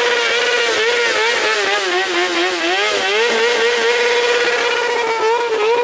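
A motorcycle engine revs loudly up and down close by.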